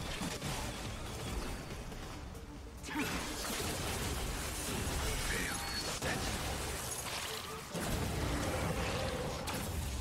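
Magical blasts and whooshes boom loudly.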